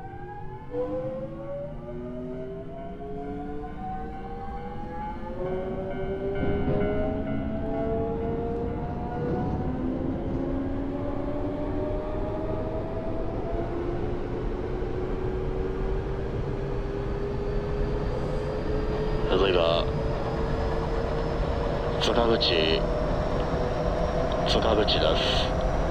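An electric train motor whines, rising steadily in pitch as the train speeds up.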